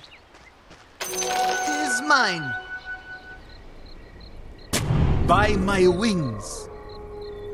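Magic spells burst with whooshing, chiming effects.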